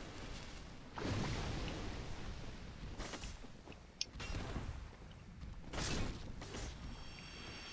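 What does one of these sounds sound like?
Sword blows and impacts clash in a fight.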